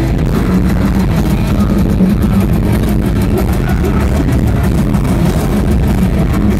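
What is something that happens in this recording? Distorted electric guitars play heavy metal loudly at a live concert.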